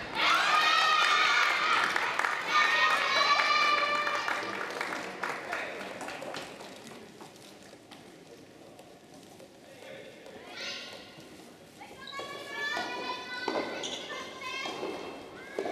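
Young women shout and cheer loudly in a large echoing hall.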